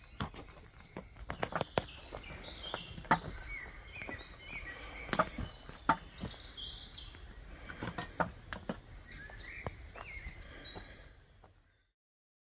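Footsteps crunch on leaves and rubble.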